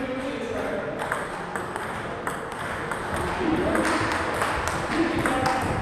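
A table tennis ball clicks sharply back and forth between paddles and the table.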